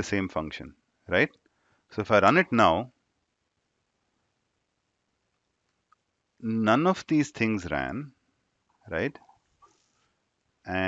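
A young man speaks calmly into a close microphone, with pauses.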